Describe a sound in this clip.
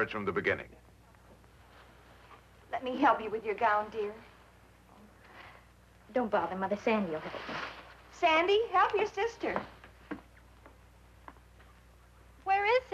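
A young woman speaks softly and hesitantly, close by.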